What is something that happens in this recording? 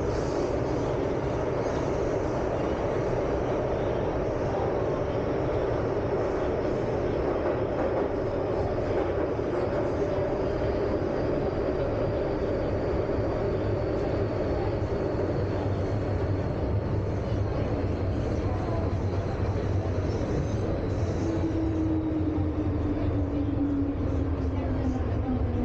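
A train car rumbles and hums steadily while moving along the track.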